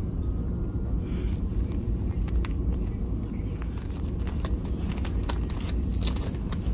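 Plastic packaging crinkles and rustles as a hand handles it.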